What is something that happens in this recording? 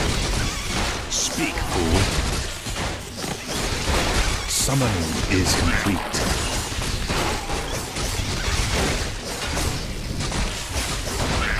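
Magic blasts crackle and whoosh amid clashing fighters.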